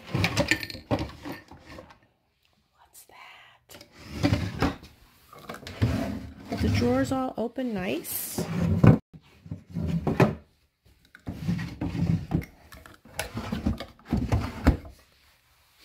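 A wooden drawer slides open and shut.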